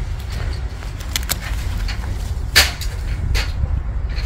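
Leaves rustle as gloved hands push through a plant.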